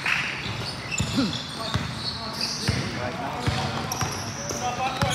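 A basketball bounces on a hard floor in a large echoing gym.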